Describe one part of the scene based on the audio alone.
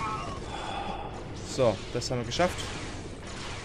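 A lightsaber hums and swooshes.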